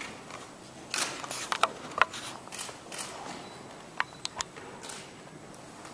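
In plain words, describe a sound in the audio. Papers rustle as pages are turned.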